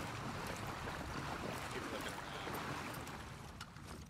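Footsteps splash slowly through shallow water.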